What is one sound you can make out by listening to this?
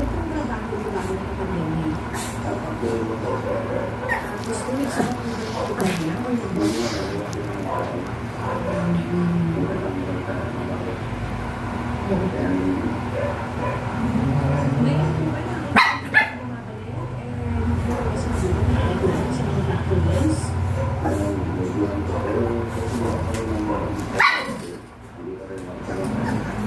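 Small puppies growl and yip as they play-fight close by.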